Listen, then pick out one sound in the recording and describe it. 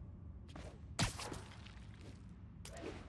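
A web line shoots out with a sharp whip.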